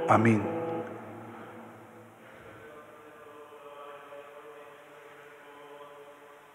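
An electronic keyboard plays sustained chords.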